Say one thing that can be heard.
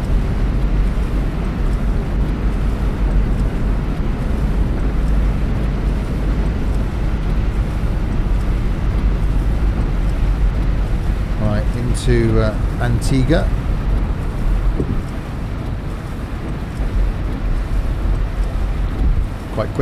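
A bus engine rumbles low and steady.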